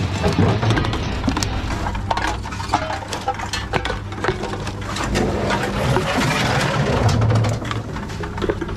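A recycling machine hums steadily.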